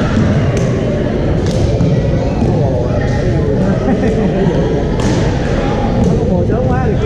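Paddles pop against plastic balls in sharp, repeated clicks.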